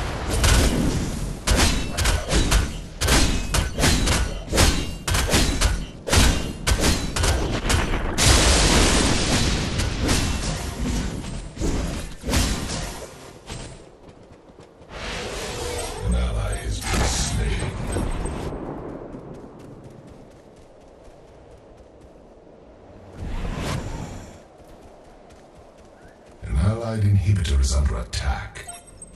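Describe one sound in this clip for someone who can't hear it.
Blades strike with sharp, quick clashing hits.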